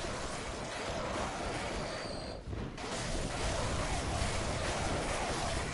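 A blade slashes and strikes flesh with wet impacts.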